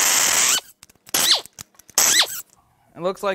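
An air ratchet whirs in short, loud bursts.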